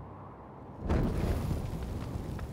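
A fire bursts into flame with a sudden whoosh.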